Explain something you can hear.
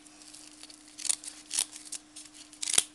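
Scissors snip through coarse fabric.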